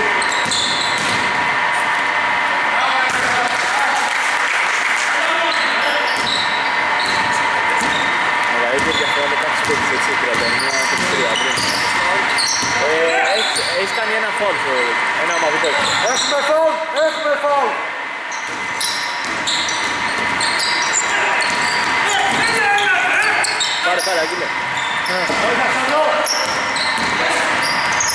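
Basketball shoes squeak on a hardwood court in an echoing gym.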